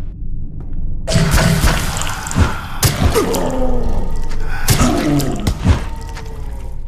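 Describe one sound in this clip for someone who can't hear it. An axe strikes a creature with heavy, wet thuds.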